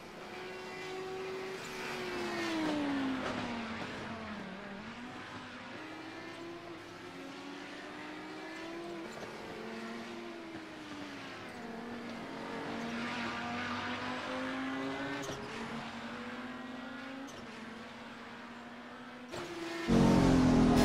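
A race car engine whines in the distance, its pitch rising and falling as it shifts gears.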